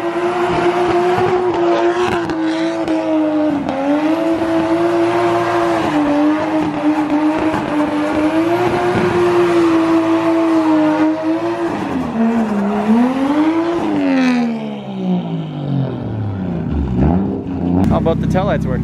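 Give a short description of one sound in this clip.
A car engine roars loudly at high revs, rising and falling.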